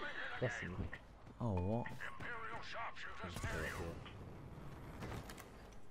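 A blaster rifle fires sharp shots.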